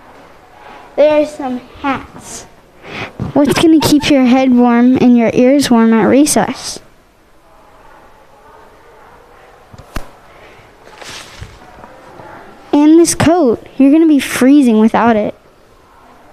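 A girl speaks with animation into a microphone, close by.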